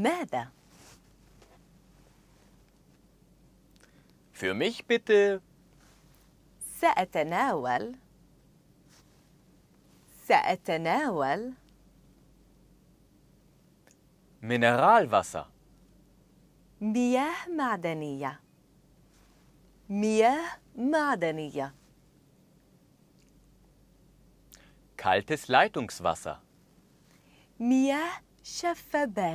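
A woman speaks clearly and slowly into a microphone, repeating short phrases.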